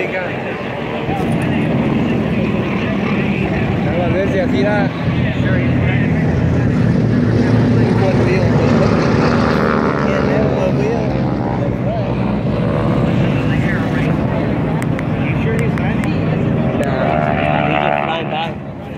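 A propeller plane's engines drone loudly as it flies low past.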